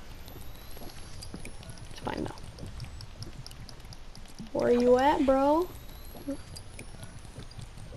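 A video game's healing kit makes a soft rustling, whirring sound while in use.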